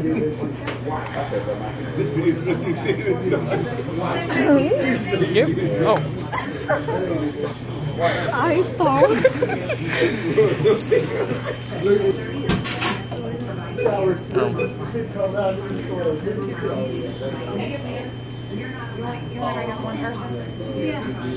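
A young woman talks and laughs cheerfully close by.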